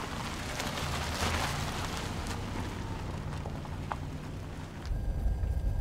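A car engine runs as a car drives slowly past.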